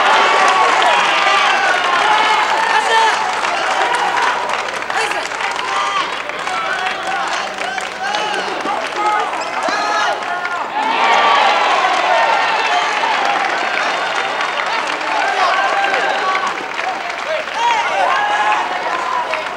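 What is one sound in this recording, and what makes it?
A large crowd of young spectators cheers and chants loudly in an echoing hall.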